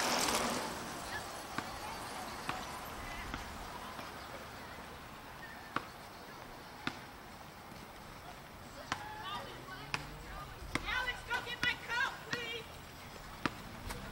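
Children shout and call out outdoors.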